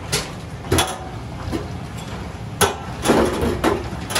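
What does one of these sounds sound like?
Water splashes into a metal sink.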